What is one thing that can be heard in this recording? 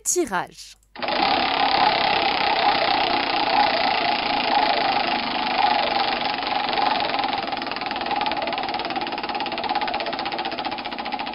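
A prize wheel spins with rapid ticking.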